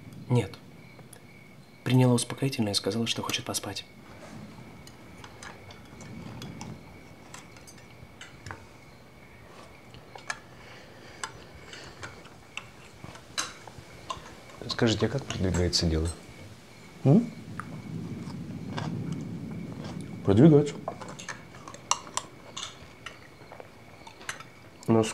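A man speaks calmly nearby, in short phrases with pauses.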